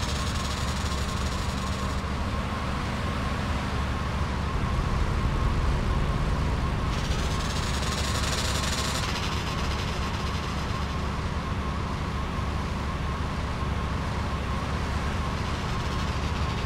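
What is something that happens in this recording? Car engines hum as cars drive past.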